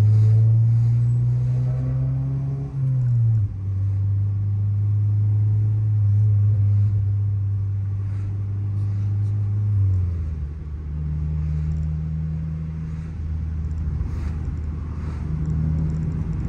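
A car engine hums loudly from inside the cabin, its pitch shifting as the driver changes gears.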